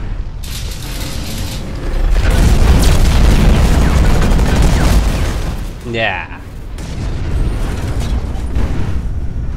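A giant machine stomps with heavy metallic footsteps.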